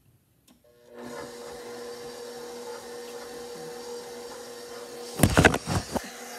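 A stand mixer whirs steadily.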